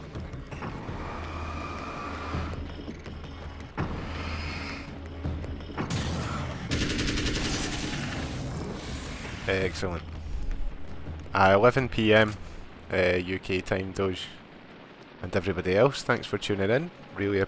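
Gunshots and explosions crack and boom from a game.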